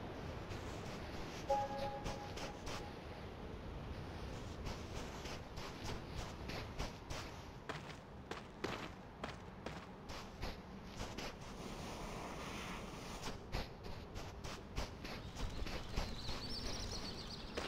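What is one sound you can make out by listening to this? Soft footsteps patter on sand.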